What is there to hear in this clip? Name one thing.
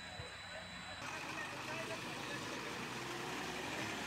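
A truck engine idles close by.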